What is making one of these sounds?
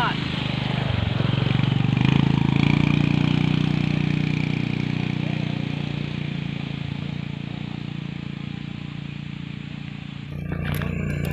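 A motorbike engine putters as it rides away and slowly fades.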